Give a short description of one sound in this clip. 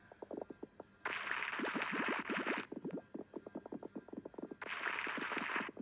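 A rushing, hissing digging sound comes in long bursts.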